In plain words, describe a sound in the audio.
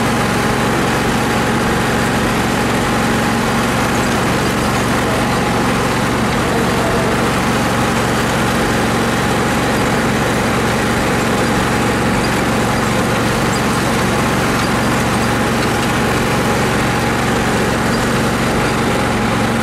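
A riding lawn mower engine runs as the mower drives across a yard.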